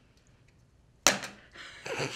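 A sharp slap rings out once.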